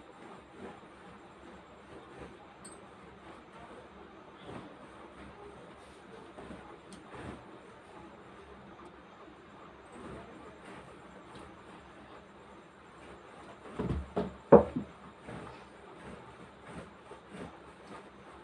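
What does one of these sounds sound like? Hands smooth and rustle fabric.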